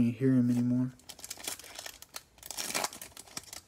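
A plastic wrapper crinkles and tears as it is ripped open.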